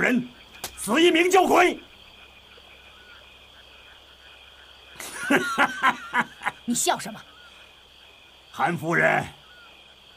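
A man shouts angrily in a rough voice.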